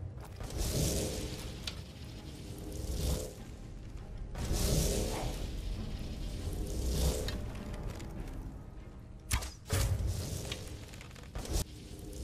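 A magic spell whooshes through the air.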